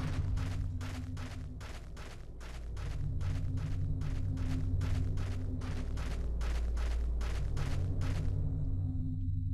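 Footsteps walk at a steady pace on a hard floor.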